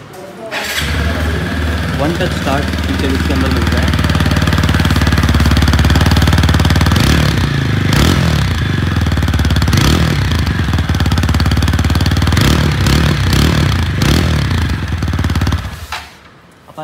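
A motorcycle engine idles loudly and revs with a deep exhaust rumble.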